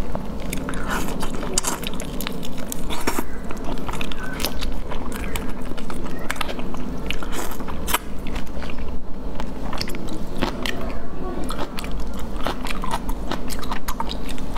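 Shrimp shells crack and crunch close by.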